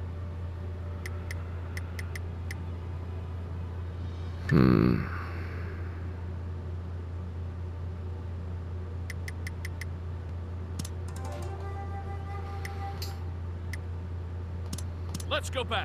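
Short interface clicks tick several times.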